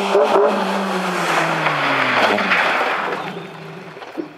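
A rally car engine revs hard and roars past, shifting gears.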